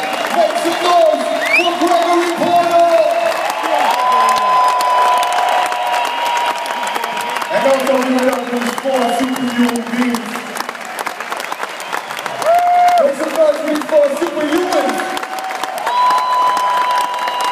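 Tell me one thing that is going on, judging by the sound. A large crowd cheers and whistles.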